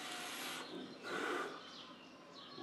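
A man exhales a puff of vapour.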